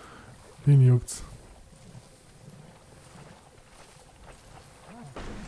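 Footsteps splash slowly through shallow water.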